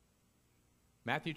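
A man begins speaking through a microphone.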